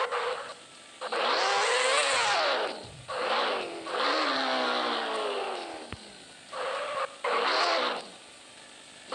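A motorcycle engine revs up and down loudly.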